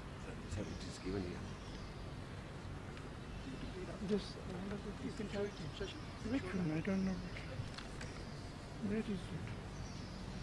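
An elderly man speaks briefly into a microphone, heard over a loudspeaker outdoors.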